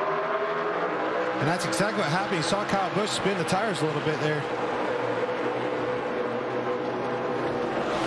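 Many race car engines roar together at high speed.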